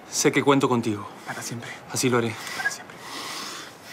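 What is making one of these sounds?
A man speaks tensely up close.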